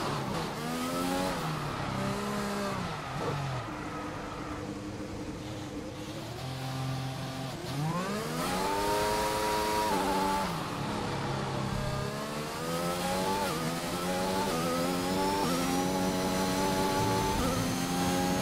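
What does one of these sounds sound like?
A racing car engine revs up and down as gears shift.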